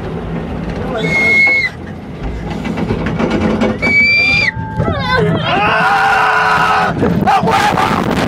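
A young man sings loudly in a strained voice close to the microphone.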